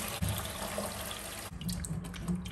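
Tap water pours steadily into a metal sink.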